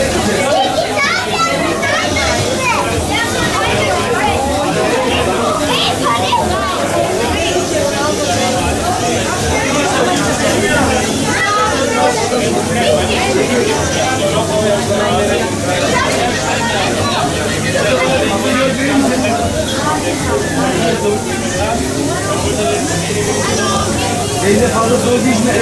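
A crowd of people chatters loudly all around.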